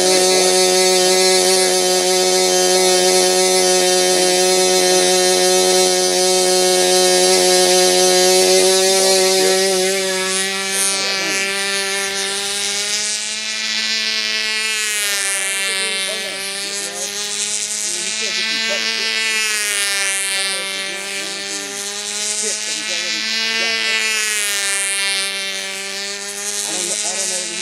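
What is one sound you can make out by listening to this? A small model plane engine whines steadily, then rises and falls in pitch as it flies overhead.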